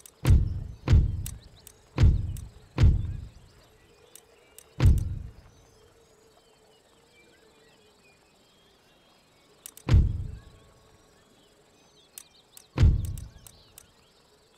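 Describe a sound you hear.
A deep, soft thud sounds each time a menu selection is made, several times with pauses between.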